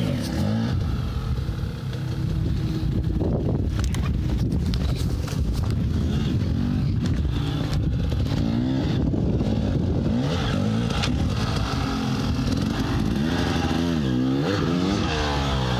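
Footsteps crunch on dry, stony ground.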